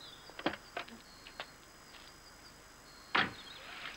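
A car door shuts with a thud.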